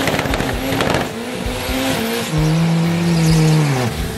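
Tyres screech as they spin on the track.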